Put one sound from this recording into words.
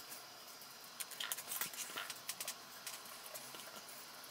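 A brush dabs and scrapes paste onto a small tray.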